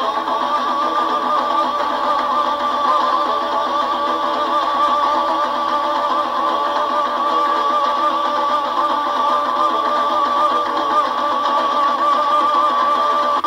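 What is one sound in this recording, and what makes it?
A man sings loudly into a microphone, heard through a loudspeaker.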